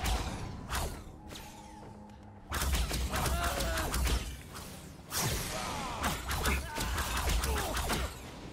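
Magic spells burst and crackle in quick, sharp bursts.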